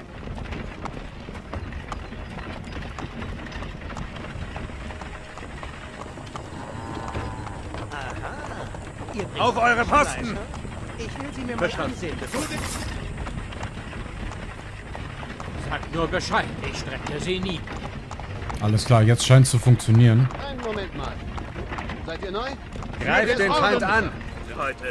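Soldiers' boots tramp on a dirt road.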